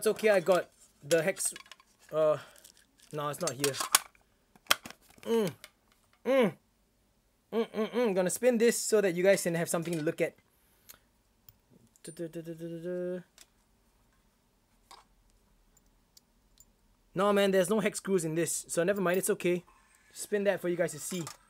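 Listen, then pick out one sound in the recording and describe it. A metal tin is handled and its lid clicks.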